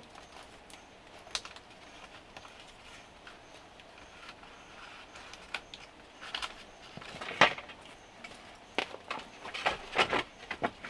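Bamboo strips knock and rattle as someone handles them.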